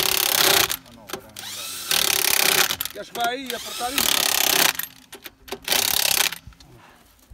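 An impact wrench whirs in loud short bursts.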